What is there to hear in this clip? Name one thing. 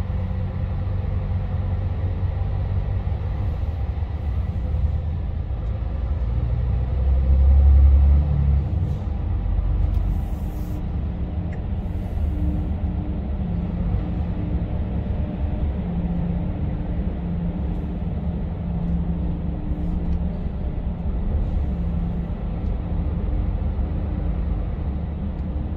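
A truck engine rumbles low and steady as the truck rolls slowly forward.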